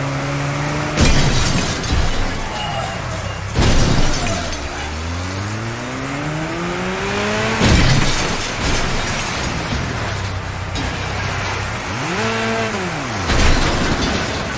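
Metal crashes and bangs in hard impacts.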